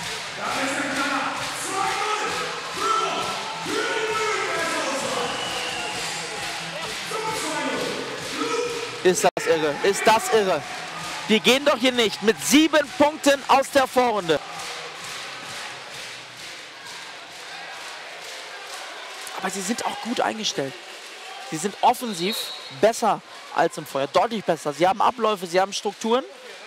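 A crowd murmurs in a large echoing hall.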